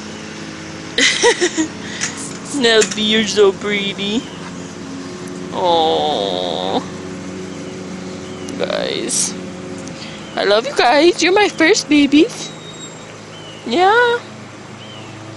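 A dog whines and yelps close by in high, bending cries.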